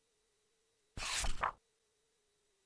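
A stiff paper page flips over with a quick rustle.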